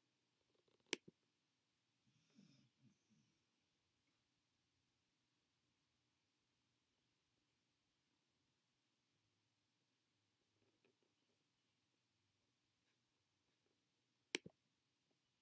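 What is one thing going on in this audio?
A mouse button clicks sharply.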